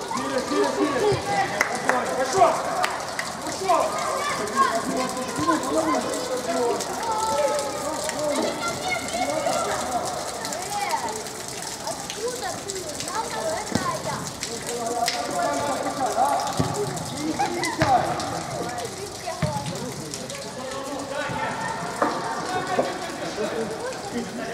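Young players shout to each other in a large echoing hall.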